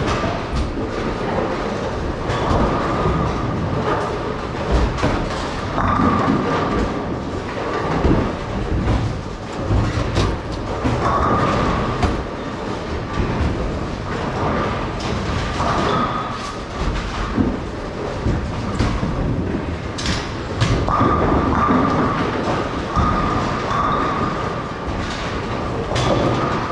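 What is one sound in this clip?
Bowling balls rumble along wooden lanes in a large, echoing hall.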